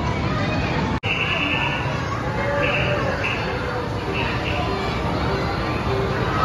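A fairground ride whirs as it spins.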